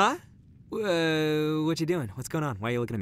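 A young man yawns.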